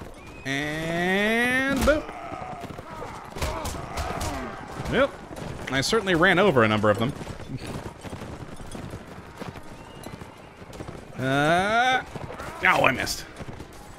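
Horses gallop over grass.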